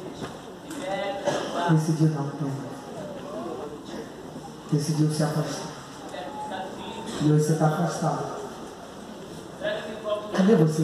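A young man preaches loudly and with passion into a microphone, heard through loudspeakers in a large echoing hall.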